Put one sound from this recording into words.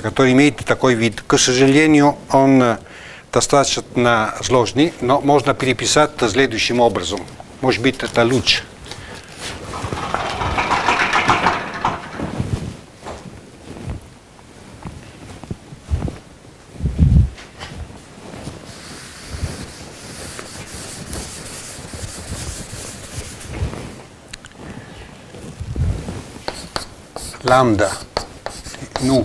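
An elderly man lectures calmly in an echoing room.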